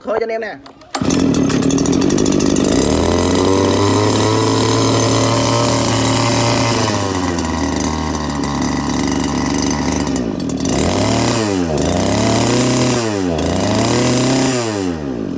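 A small petrol engine starts and runs loudly.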